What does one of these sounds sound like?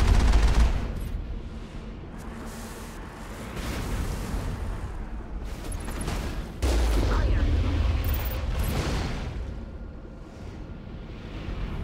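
A vehicle engine rumbles.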